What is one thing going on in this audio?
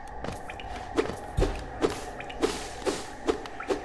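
Light footsteps patter at a steady walking pace.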